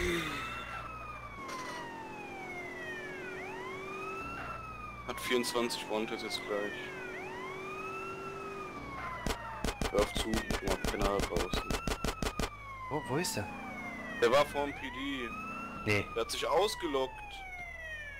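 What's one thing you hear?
A police siren wails steadily, rising and falling.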